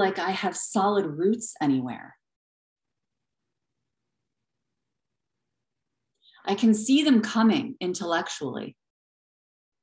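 A woman speaks calmly close to the microphone.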